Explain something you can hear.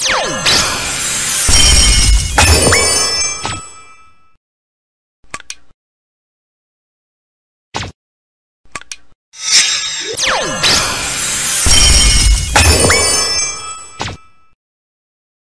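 A game plays a loud burst of magical energy and chimes.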